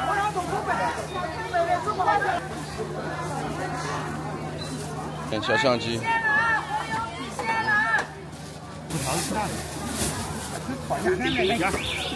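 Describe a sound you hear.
Women talk and bargain close by.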